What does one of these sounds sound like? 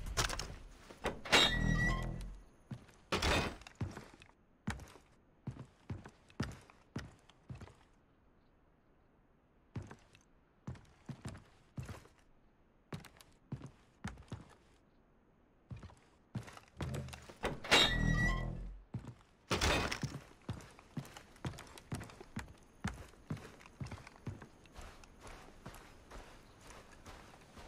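Footsteps thud on hollow wooden boards at a steady walking pace.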